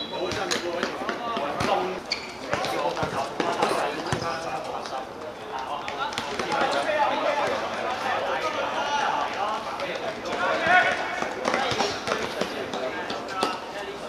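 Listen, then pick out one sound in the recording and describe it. A ball is kicked with dull thuds.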